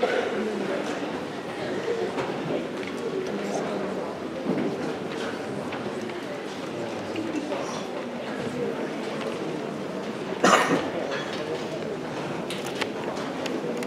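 A large concert band plays a piece in an echoing hall.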